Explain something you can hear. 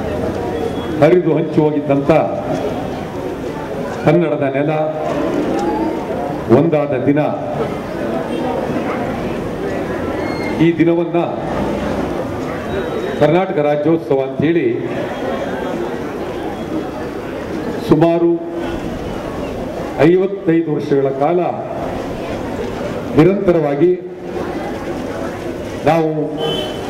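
An older man speaks loudly and with animation through a microphone and loudspeakers, in bursts.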